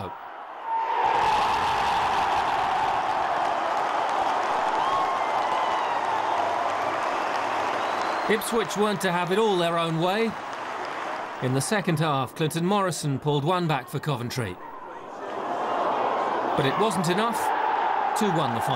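A large crowd cheers and roars loudly.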